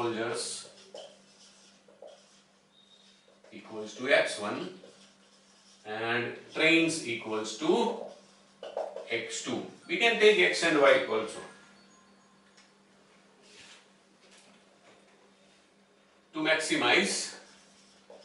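A man speaks calmly and clearly, as if teaching, close by.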